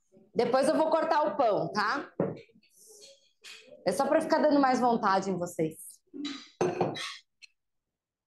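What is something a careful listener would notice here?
A woman talks calmly and clearly, close to a microphone.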